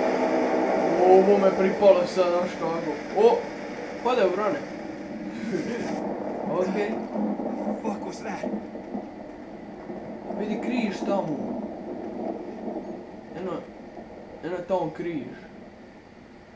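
A young man talks with animation into a microphone, now and then exclaiming in surprise.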